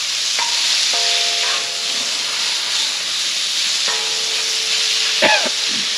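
Meat sizzles loudly on a hot griddle.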